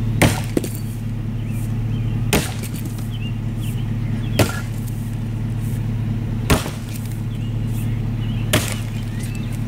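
An axe chops into a log outdoors.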